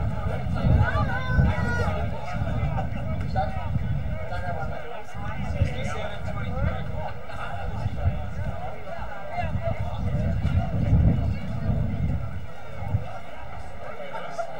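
Young men shout and call out across the field.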